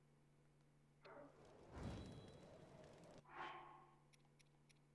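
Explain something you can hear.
Flames whoosh and crackle briefly.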